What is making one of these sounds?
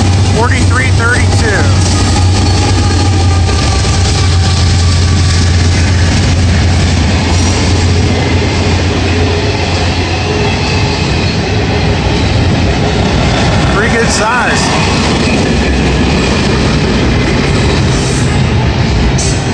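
Freight cars clatter and rattle steadily over the rails.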